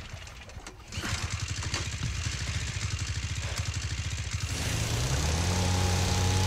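A boat motor sputters to life and chugs, growing louder and steadier.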